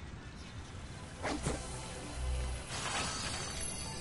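A game character lands with a thump.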